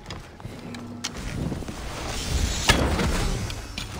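A bow string snaps as an arrow is loosed.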